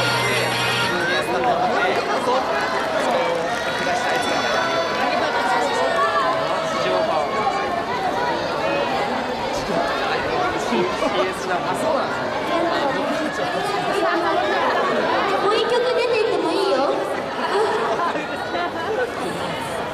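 Young women speak through microphones with animation.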